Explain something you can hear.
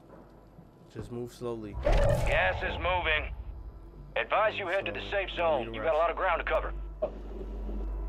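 A young man talks into a headset microphone.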